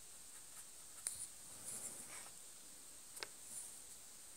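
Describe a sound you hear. A small plastic model knocks lightly as a hand moves it on a table.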